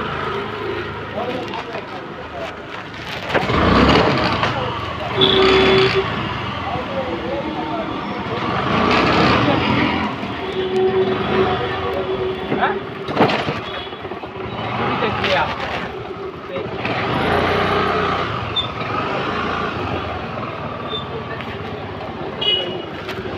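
Traffic rumbles steadily along a busy street close by.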